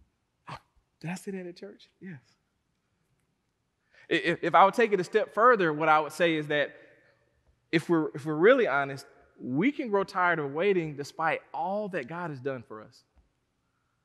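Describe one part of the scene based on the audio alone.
A man preaches with animation through a headset microphone in a large echoing hall.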